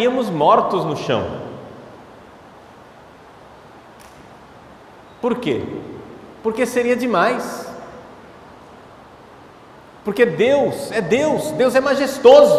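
A man speaks slowly and with feeling into a microphone, with pauses, in an echoing hall.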